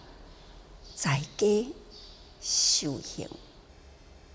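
An elderly woman speaks calmly and slowly, close to a microphone.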